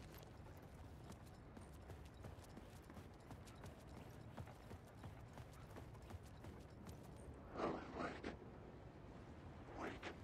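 A man's footsteps tread slowly on a hard floor.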